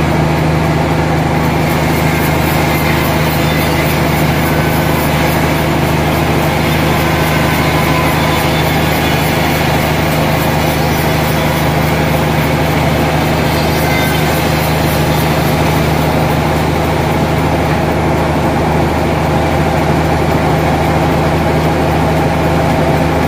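A large band saw roars steadily as it cuts through wood.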